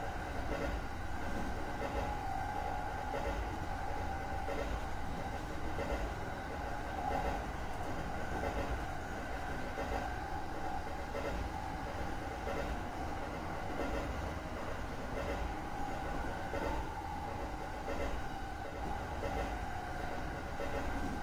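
A train rumbles along the rails at a steady speed.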